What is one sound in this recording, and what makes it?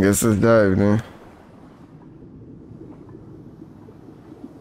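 A low, muffled underwater rumble.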